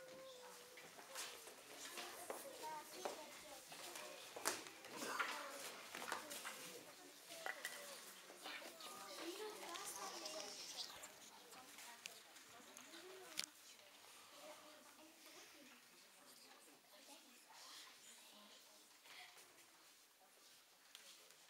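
Children's feet shuffle and tap on a wooden floor.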